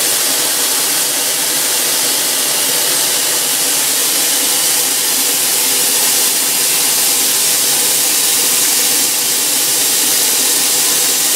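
Steam hisses loudly from a locomotive's cylinders.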